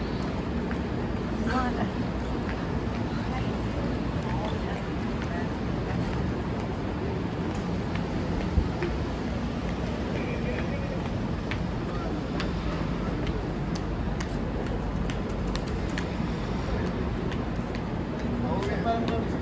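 Steady city traffic rumbles outdoors.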